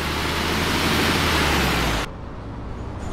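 Bus doors hiss loudly with a rush of air, then stop abruptly.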